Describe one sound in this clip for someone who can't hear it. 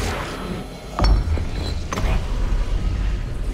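A deep magical boom swells and rumbles.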